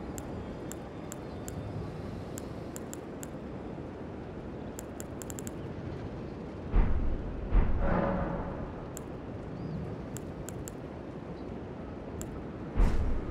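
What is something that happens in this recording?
Soft menu clicks tick at irregular intervals.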